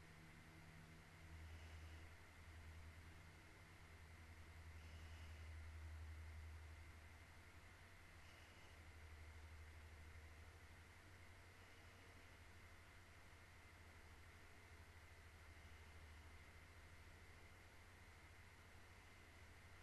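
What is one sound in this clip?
A young woman speaks softly and close into a microphone.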